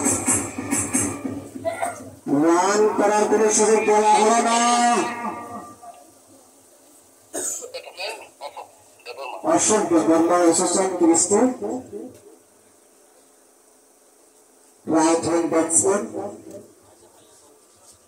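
A man speaks loudly into a microphone over a loudspeaker, in bursts with pauses.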